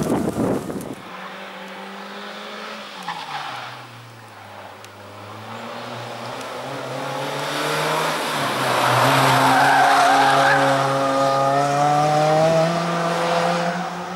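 A rally car engine revs hard as the car climbs and approaches.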